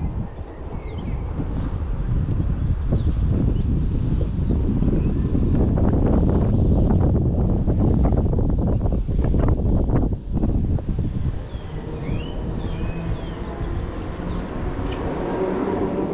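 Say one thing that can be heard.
Wind rushes loudly past the microphone as the rider speeds down.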